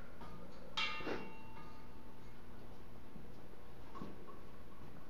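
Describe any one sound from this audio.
A metal pot clinks and rings briefly.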